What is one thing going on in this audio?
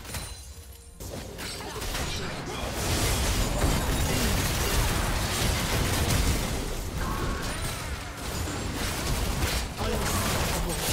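Magic blasts and impacts burst rapidly.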